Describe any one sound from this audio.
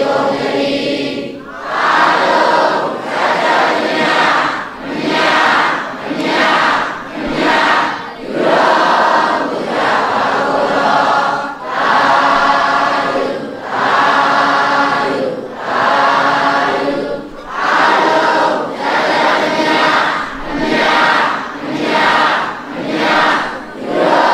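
A large crowd of men and women chant a prayer together in rhythmic phrases, echoing in a large hall.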